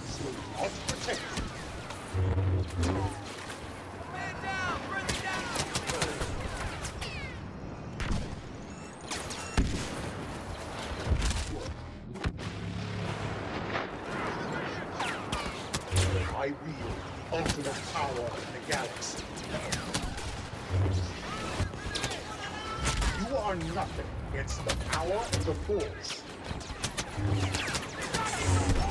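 Laser blasters fire in quick bursts.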